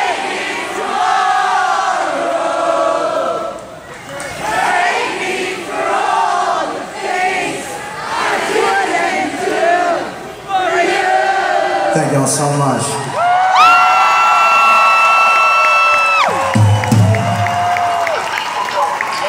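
An electric guitar plays loudly through an amplifier.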